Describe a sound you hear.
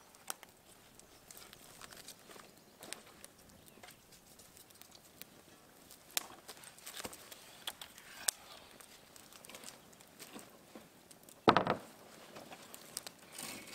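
Wooden poles knock and clatter against each other.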